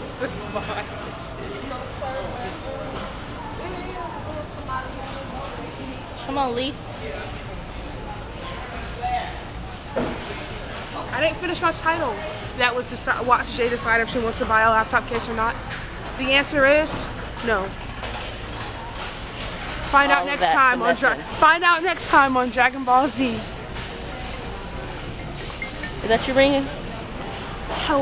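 A young woman talks close to a microphone.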